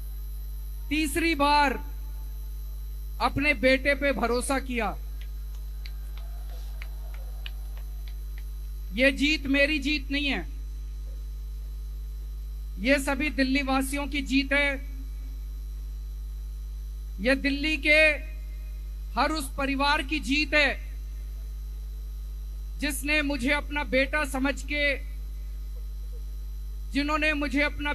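A man speaks loudly through a microphone and loudspeakers outdoors, in short bursts with pauses.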